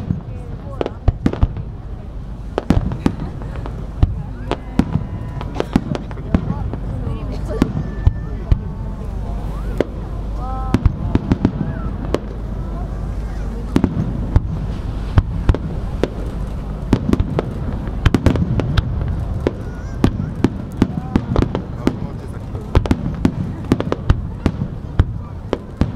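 Fireworks burst with loud booms and sharp cracks, echoing outdoors.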